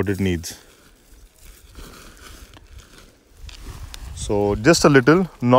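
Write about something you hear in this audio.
Hands rustle through dry soil and leaves.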